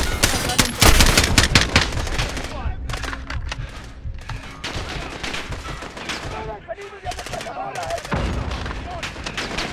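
Explosions rumble and boom nearby.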